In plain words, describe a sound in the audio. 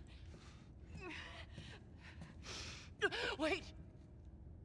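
A young woman speaks quietly into a microphone.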